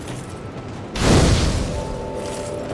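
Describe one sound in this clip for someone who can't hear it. A fire flares up with a loud whoosh.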